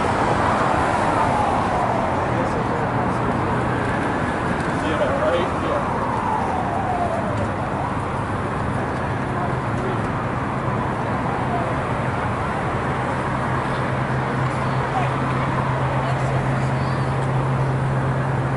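Traffic rumbles past on a nearby road.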